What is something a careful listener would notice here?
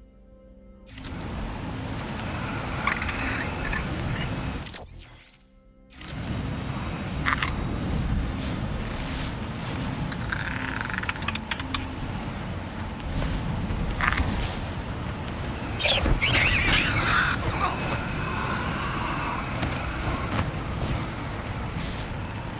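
Wind rushes and roars past during fast flight.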